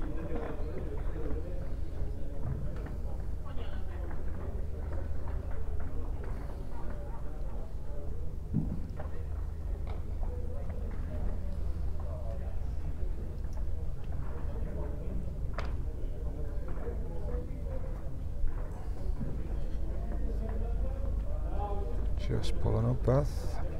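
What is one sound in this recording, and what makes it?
A small crowd of adults murmurs and chats in a large indoor hall.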